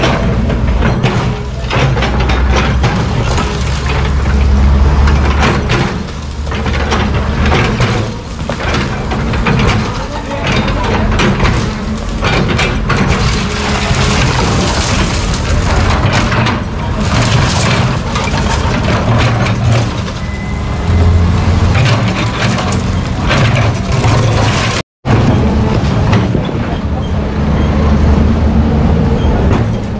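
Broken concrete chunks clatter and tumble to the ground.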